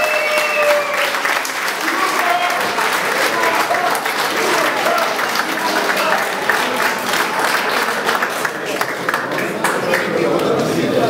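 A crowd of men and women cheers and shouts.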